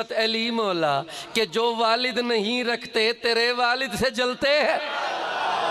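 A man speaks loudly and with passion through a microphone and loudspeaker.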